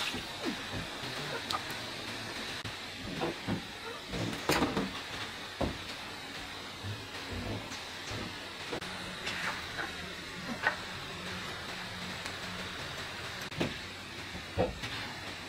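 Plastic basins knock and clatter as they are set down.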